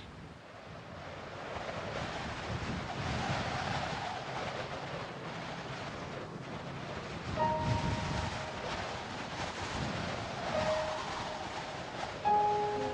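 Wind blows steadily through dry reeds outdoors.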